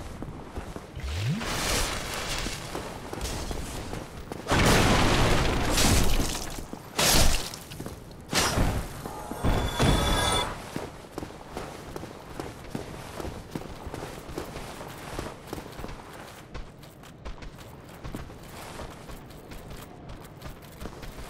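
Heavy armoured footsteps clank on stone.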